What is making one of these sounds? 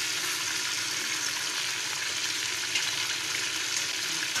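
A wooden spoon stirs chicken against a metal pot.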